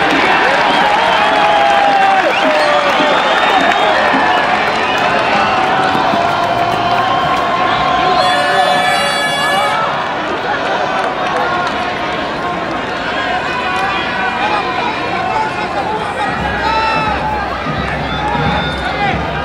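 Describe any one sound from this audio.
A large crowd cheers and chants loudly outdoors.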